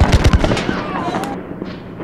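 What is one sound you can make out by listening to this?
Muskets fire in a loud volley outdoors.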